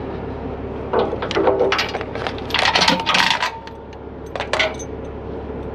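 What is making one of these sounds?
Heavy metal chains rattle and clank.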